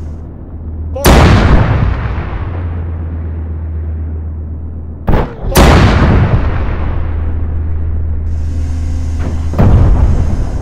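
Large explosions boom loudly and rumble away.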